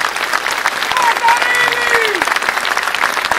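A clarinet plays a brief gliding phrase.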